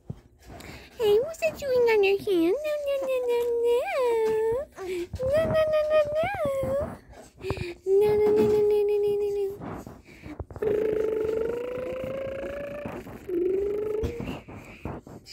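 A woman talks to a baby close by in a high, sing-song voice.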